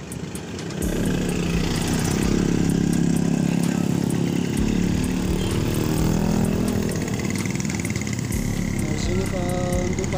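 Motor scooters ride past with buzzing engines.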